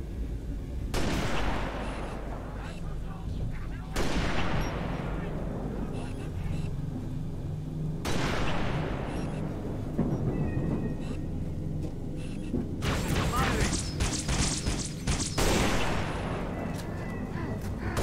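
A sniper rifle fires loud shots that echo and slowly die away.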